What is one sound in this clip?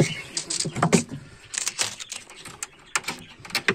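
A bird flutters its wings close by, brushing against wood.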